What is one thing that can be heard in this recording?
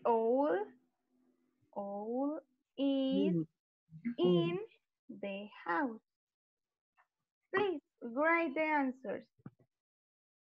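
A girl speaks slowly and clearly over an online call.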